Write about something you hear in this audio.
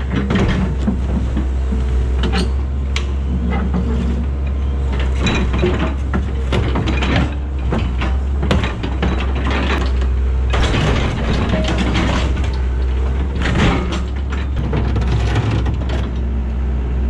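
Metal crunches and scrapes as an excavator bucket tears into a wrecked bus.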